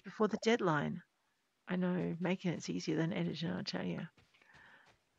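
A woman talks with animation into a nearby microphone.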